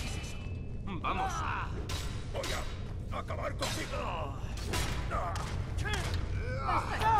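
A man shouts and grunts in pain.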